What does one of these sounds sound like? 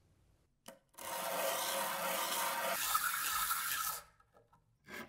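A metal nut scrapes across sandpaper.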